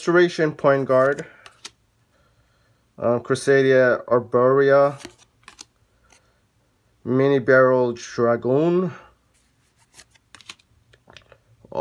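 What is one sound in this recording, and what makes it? Playing cards slide and flick softly in someone's hands.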